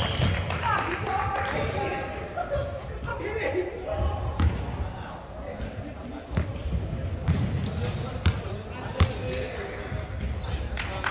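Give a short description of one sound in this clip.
A volleyball is hit with sharp slaps that echo in a large hall.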